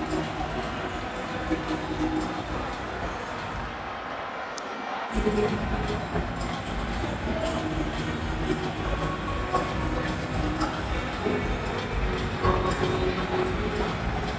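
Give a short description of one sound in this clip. A large stadium crowd cheers and sings loudly all around.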